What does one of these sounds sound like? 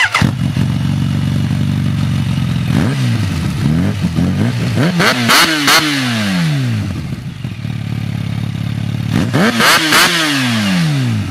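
A motorcycle engine idles with a deep, throbbing rumble close by.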